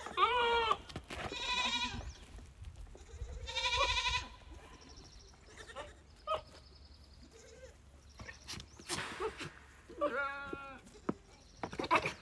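Goats bleat loudly and shakily nearby.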